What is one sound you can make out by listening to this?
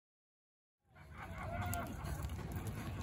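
Horse hooves thud softly at a walk on dirt.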